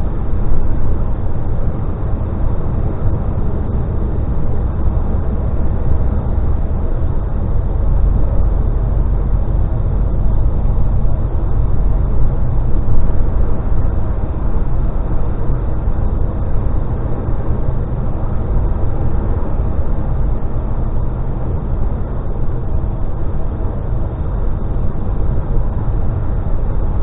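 A vehicle's engine rumbles steadily as it drives.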